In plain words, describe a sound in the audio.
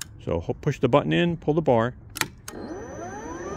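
A button clicks.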